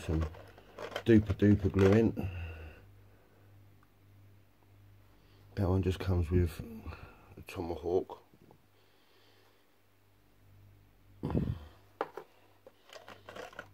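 Small plastic pieces rattle in a plastic box.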